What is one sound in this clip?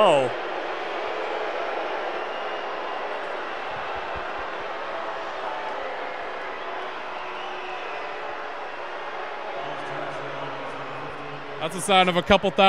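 A large indoor crowd murmurs steadily in an echoing hall.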